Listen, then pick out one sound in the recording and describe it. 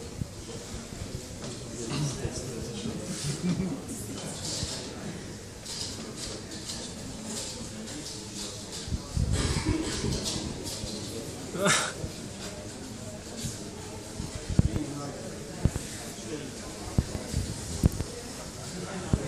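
A man speaks into a microphone, heard through loudspeakers in a hall.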